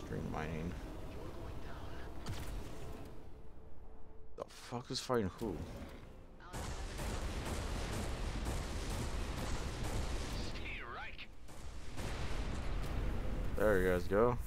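Explosions boom as asteroids burst apart.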